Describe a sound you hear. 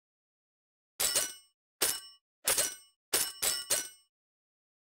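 Quick bright chimes ring out one after another.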